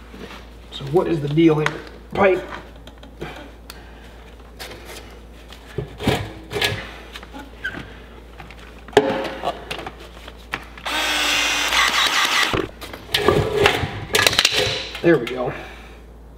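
Plastic pipe fittings click and knock.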